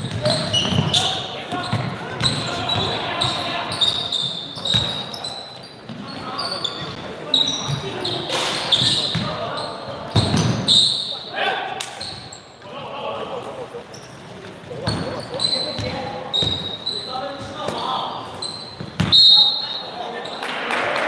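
Young boys shout and call out to each other across the court.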